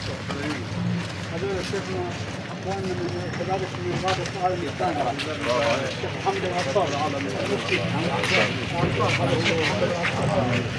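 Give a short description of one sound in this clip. Several men talk and greet each other nearby.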